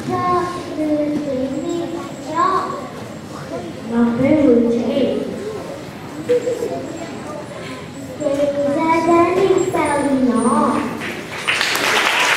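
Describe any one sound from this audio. Young children speak lines loudly.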